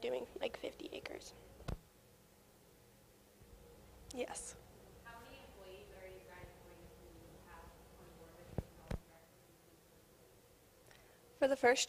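A young woman speaks into a microphone in a large echoing hall.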